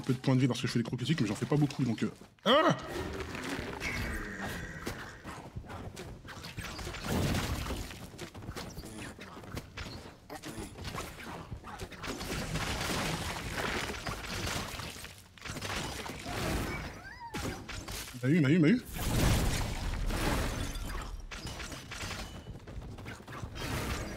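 Video game spell blasts and hits burst in quick succession.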